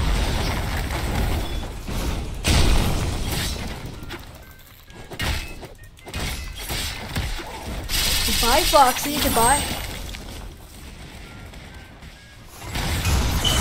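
Sharp sword slashes swish.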